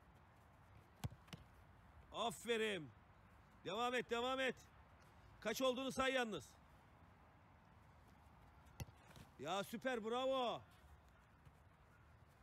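A football thuds as it is kicked and caught.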